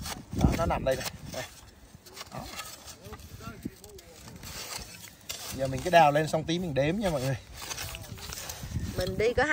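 A garden fork digs and scrapes through loose soil.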